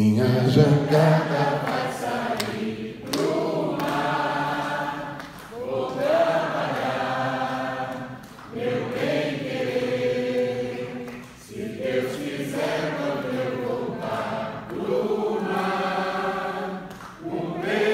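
An elderly man sings long, wavering phrases through a microphone.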